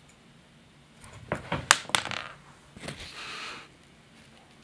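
A cat's paws thump and scrabble across a rug and wooden floor.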